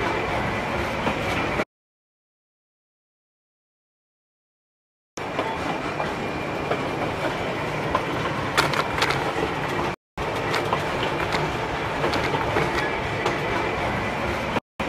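A passenger train rumbles and clatters along the rails.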